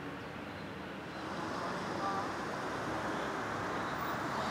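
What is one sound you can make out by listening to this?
Traffic rumbles past on a road.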